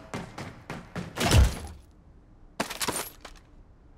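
A weapon clicks and rattles as it is picked up.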